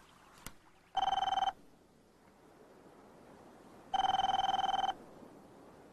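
A telephone rings in short bursts.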